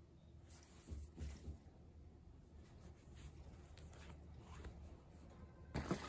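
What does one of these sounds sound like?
Satin fabric rustles softly as hands handle plush toys.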